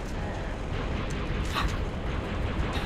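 A gun clicks and clatters as it is picked up.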